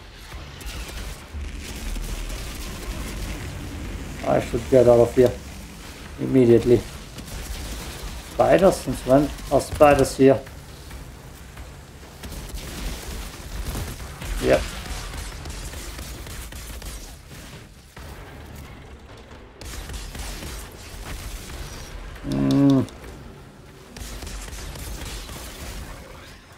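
Gunfire and explosions from a video game crackle steadily.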